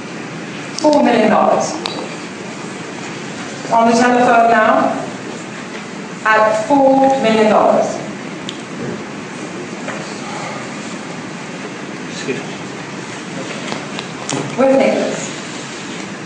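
A man speaks through an online call over a loudspeaker, with a steady hiss.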